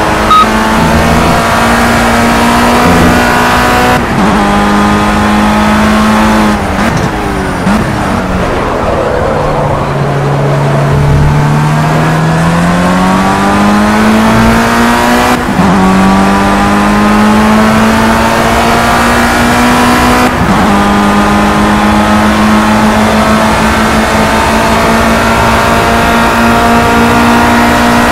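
A racing car engine roars at high revs, dropping in pitch as it slows for a bend and rising again as it speeds up.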